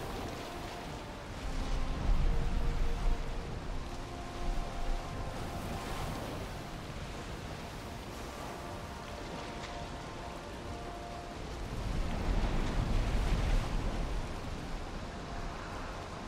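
Stormy wind roars steadily, swelling louder at times.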